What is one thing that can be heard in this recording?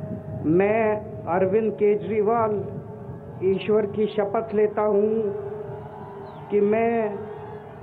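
A man repeats words slowly through a loudspeaker.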